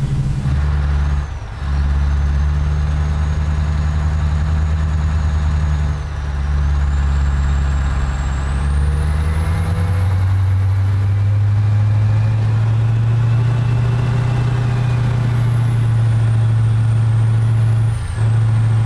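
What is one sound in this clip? A truck engine rumbles steadily and rises in pitch as it shifts gears.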